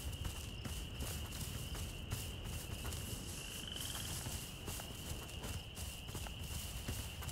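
Footsteps rustle through tall dry grass.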